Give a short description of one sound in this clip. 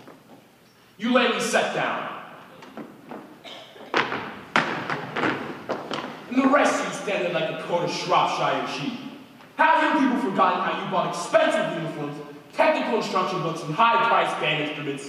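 A chorus of men and women sings together in a large hall.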